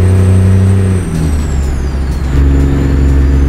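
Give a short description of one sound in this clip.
A truck engine drops in pitch as gears shift, then picks up again.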